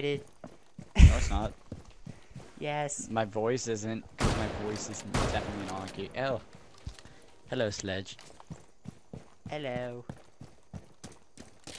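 Gunshots crack out in short bursts.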